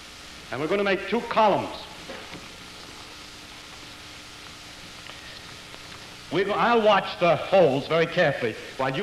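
A man lectures with animation, heard through a microphone.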